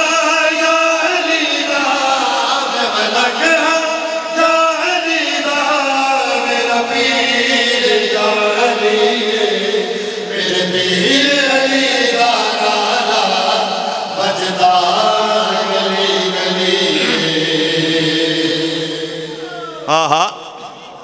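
An elderly man sings a devotional chant through a loudspeaker.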